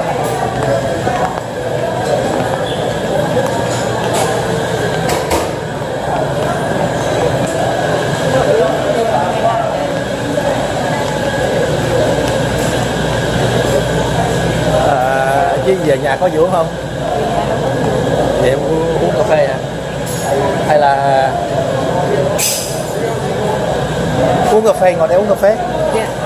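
A middle-aged man talks cheerfully close to the microphone.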